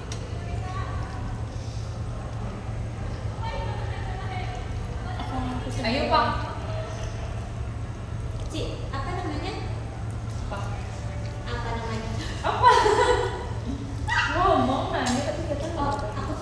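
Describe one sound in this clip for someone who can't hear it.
A young woman talks playfully and close by.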